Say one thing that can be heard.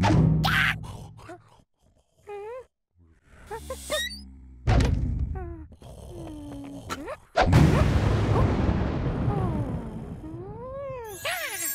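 A cartoon character cries out in alarm in a high, childlike voice.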